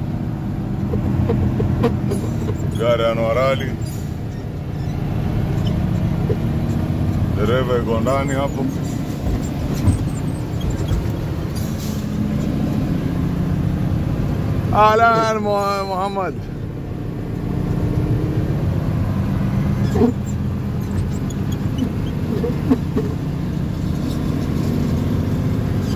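A heavy vehicle's engine rumbles steadily as it drives.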